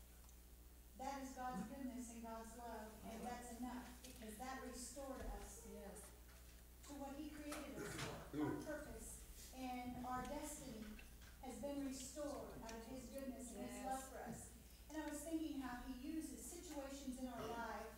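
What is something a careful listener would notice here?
A woman speaks with animation through a microphone, echoing in a large room.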